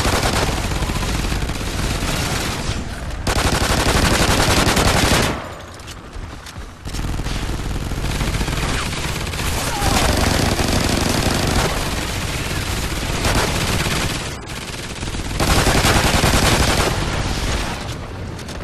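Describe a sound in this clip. Pistols fire rapidly, close by.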